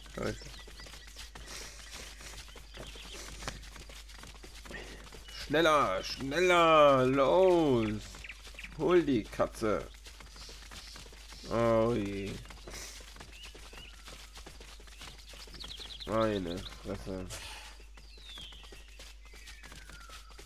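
A small creature runs through grass with light footsteps.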